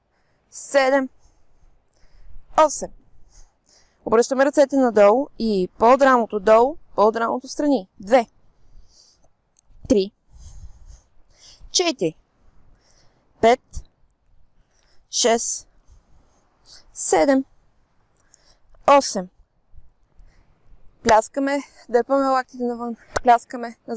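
A woman speaks calmly into a clip-on microphone, giving short instructions.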